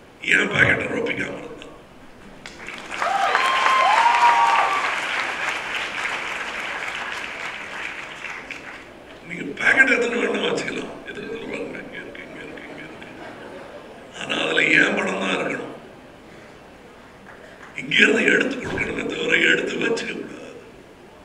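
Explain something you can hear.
A middle-aged man speaks with animation into a microphone over loudspeakers, in pauses.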